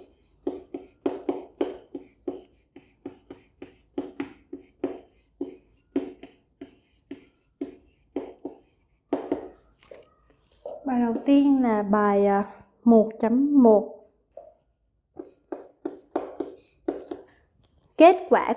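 Chalk taps and scrapes on a blackboard in quick strokes.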